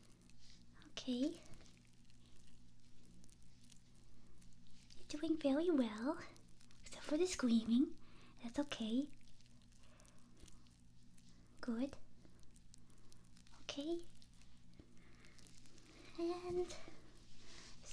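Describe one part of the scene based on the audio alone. A young woman speaks softly and breathily close to a microphone.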